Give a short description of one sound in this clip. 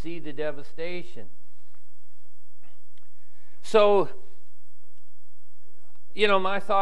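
An elderly man speaks with animation into a microphone, with pauses.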